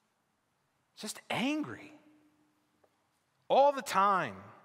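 A man speaks with animation through a microphone in a large echoing hall, with long pauses.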